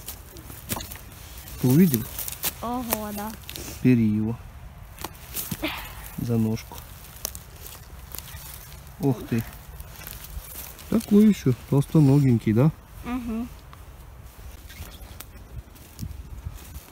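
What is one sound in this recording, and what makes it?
Footsteps crunch on dry forest litter.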